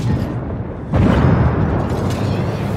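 A shell explodes in a loud blast.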